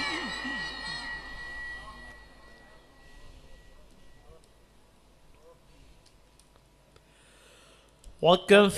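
A man chants melodiously into a microphone, his voice echoing through loudspeakers.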